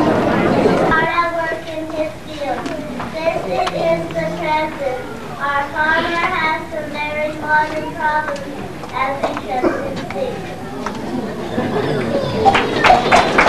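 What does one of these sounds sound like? A group of young children sing together nearby.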